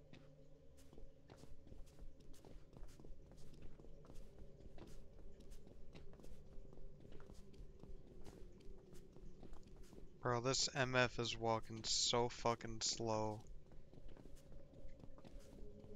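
Soft footsteps tap in a quick, even rhythm.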